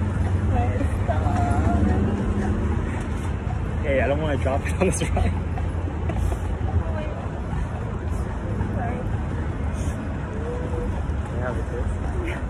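A young man laughs close by.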